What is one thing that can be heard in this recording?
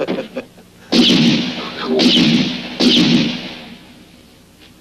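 Gunshots ring out loudly, echoing sharply.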